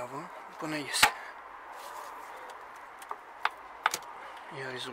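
A plastic engine part clicks and knocks as it is pushed into place.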